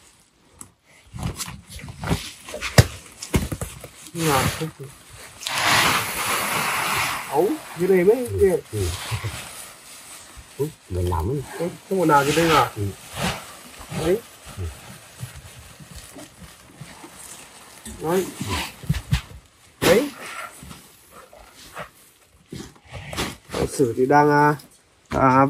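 Plastic sacks rustle and crinkle.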